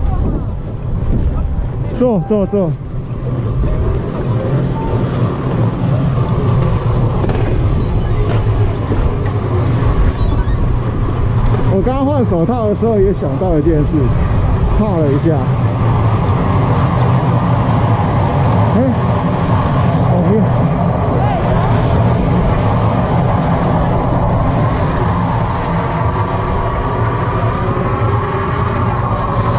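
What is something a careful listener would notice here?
A chairlift's machinery hums and rumbles steadily.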